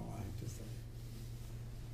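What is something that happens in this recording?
An elderly man speaks calmly and briefly, close by.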